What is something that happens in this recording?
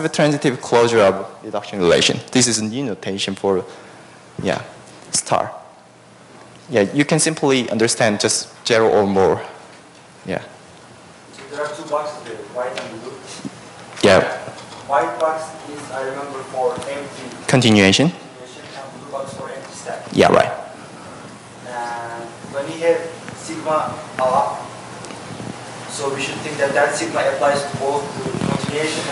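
A young man lectures through a microphone in a large echoing hall.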